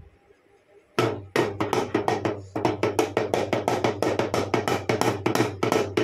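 A small boy beats a toy drum in fast, steady taps.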